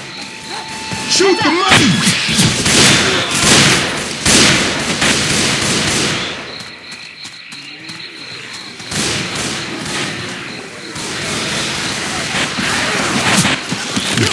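A sniper rifle fires single shots.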